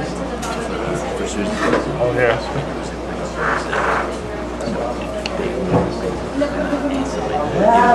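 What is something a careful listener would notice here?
A live band plays.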